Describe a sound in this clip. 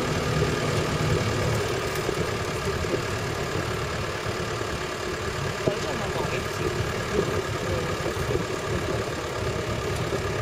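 Tyres crunch and rattle over a rough dirt track.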